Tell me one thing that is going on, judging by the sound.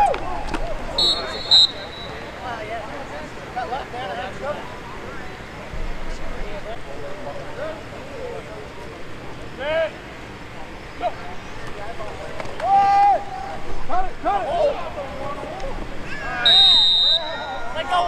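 A referee's whistle blows sharply a few times.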